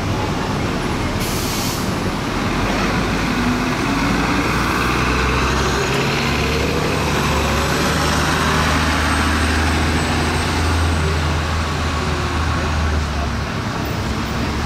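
A bus engine rumbles loudly as the bus pulls away.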